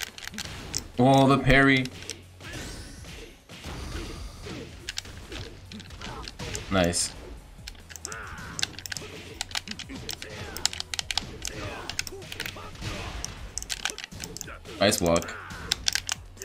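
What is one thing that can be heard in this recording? Game fighters grunt and shout as they attack.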